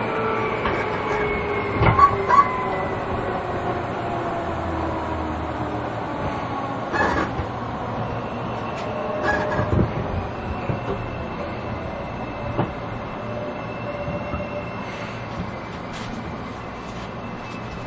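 A train rolls slowly past with a low rumble.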